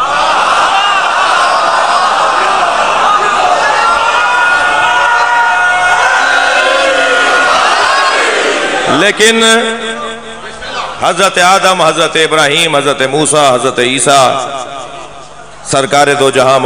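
A man chants with emotion through a microphone.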